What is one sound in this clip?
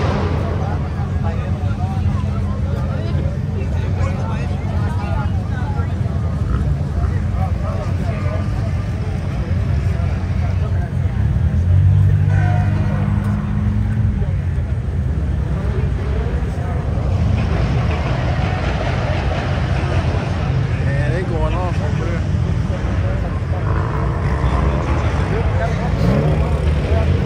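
Car engines idle and rumble nearby.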